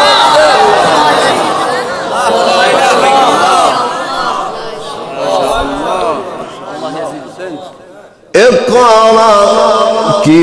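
A young man chants melodically into a microphone, heard through a loudspeaker with echo.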